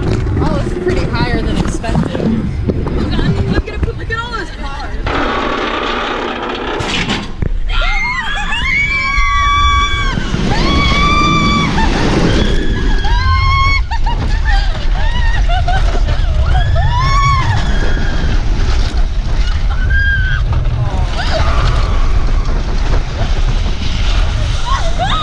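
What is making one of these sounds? Wind roars loudly past the riders of a fast ride.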